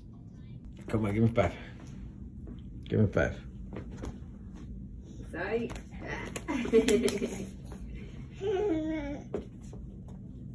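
A small child squeals and laughs excitedly.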